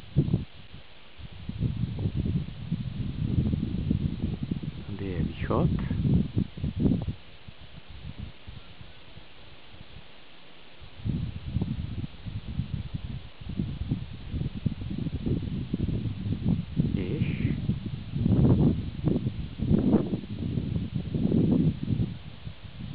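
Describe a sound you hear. Wind blusters across open ground outdoors.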